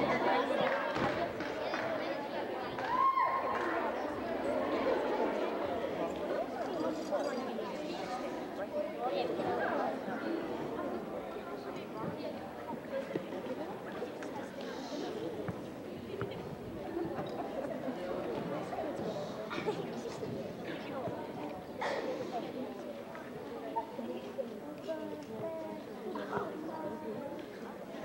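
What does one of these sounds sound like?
An audience of children and adults chatters in a large echoing hall.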